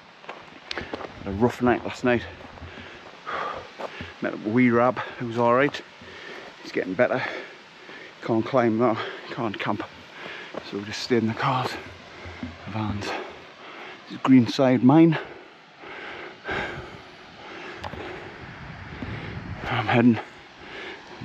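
A middle-aged man talks close by, with animation.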